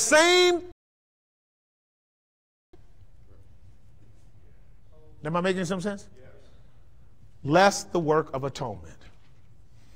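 A man preaches with animation through a microphone in a large echoing hall.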